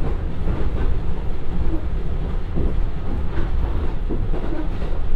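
A diesel railcar engine rumbles steadily.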